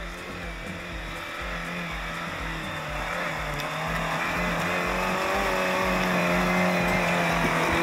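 An off-road vehicle's engine rumbles and grows louder as it climbs closer.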